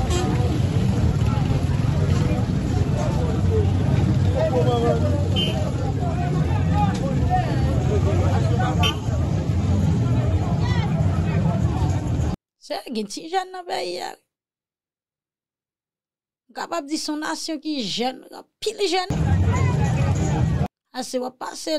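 A crowd of people chatters and shouts outdoors.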